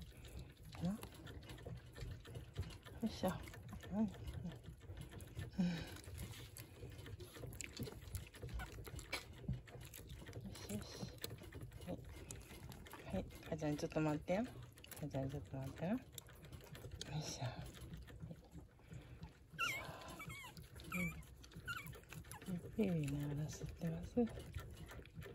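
Small puppies whimper and squeak while nursing.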